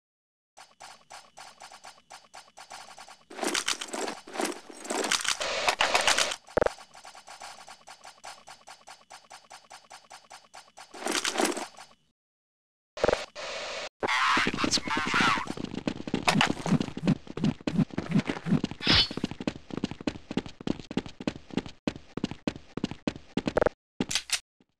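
Quick footsteps run over stone paving.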